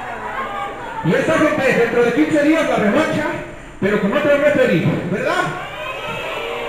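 A crowd of spectators cheers and yells loudly.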